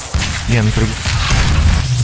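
A heavy gun fires shots.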